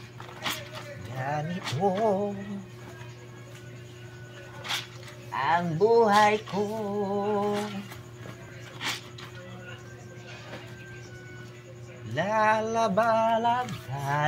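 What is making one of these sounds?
A young man sings nearby in short phrases.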